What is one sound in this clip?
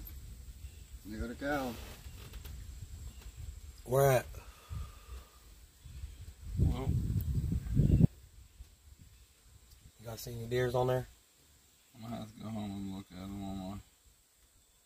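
A man talks close by in short bursts.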